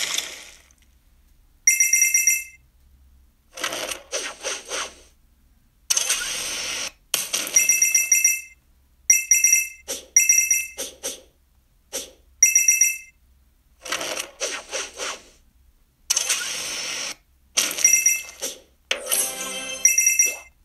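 A mobile game plays bursts of bright chiming and whooshing sound effects.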